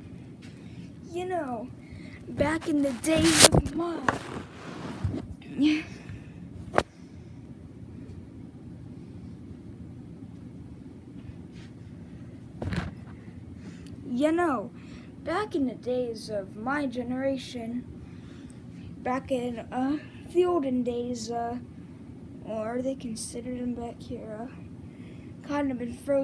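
A boy speaks with animation close by.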